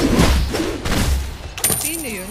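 Video game battle effects clash and whoosh.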